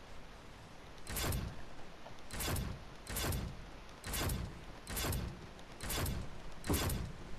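Footsteps tap in a steady rhythm as a game character runs.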